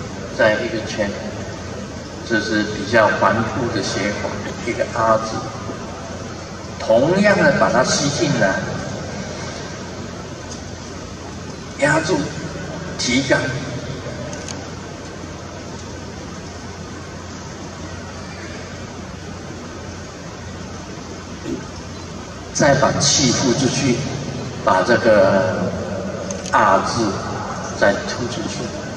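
A man speaks slowly and calmly into a microphone, with long pauses, in a large echoing space.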